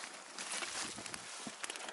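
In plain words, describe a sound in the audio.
Leaves rustle against a microphone.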